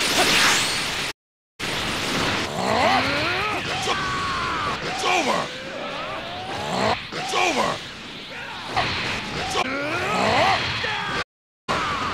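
Explosions boom in quick bursts.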